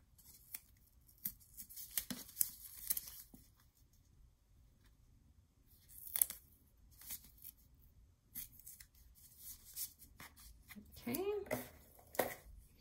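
Paper rustles and crinkles as hands fold and smooth it.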